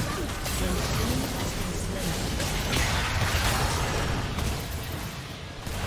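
Magic spell effects whoosh and crackle in quick bursts.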